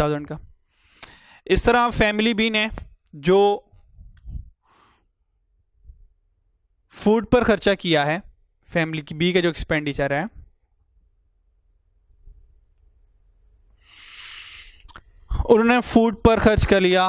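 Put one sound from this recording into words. A man lectures calmly through a clip-on microphone, in pauses.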